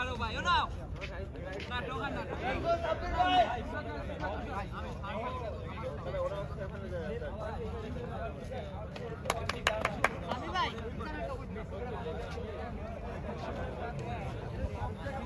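Several young men talk and call out to each other outdoors.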